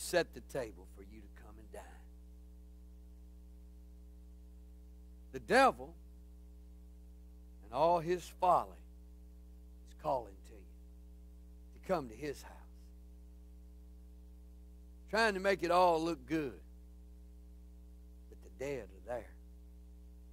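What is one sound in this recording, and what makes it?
A man speaks with animation through a microphone, in short bursts with pauses.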